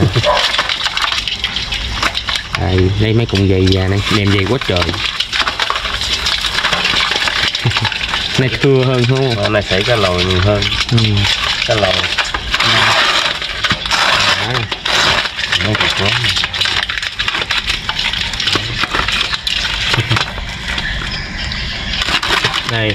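Crabs and fish scrape and rustle against a metal basin.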